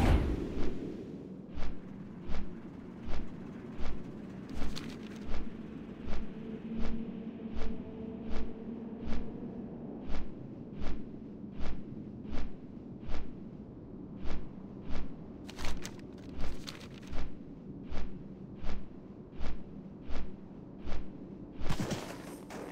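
Large wings flap in a steady, even beat.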